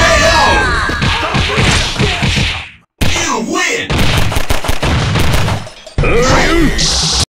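Rapid blows land with sharp smacks.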